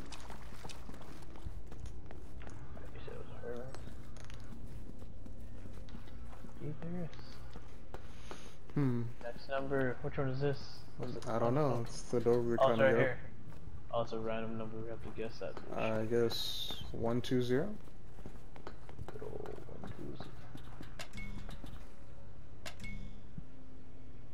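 Footsteps walk on a stone floor.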